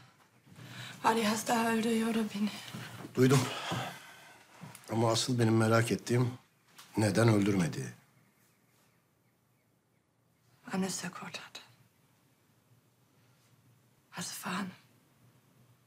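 A middle-aged man speaks in a low, tense voice close by.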